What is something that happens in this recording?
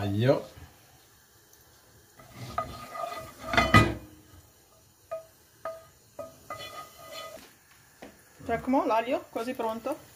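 Garlic sizzles softly in hot oil.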